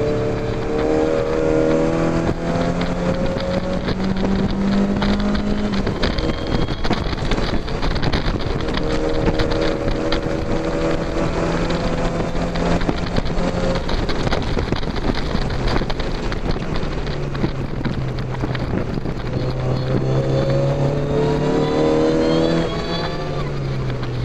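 Wind buffets loudly around an open car.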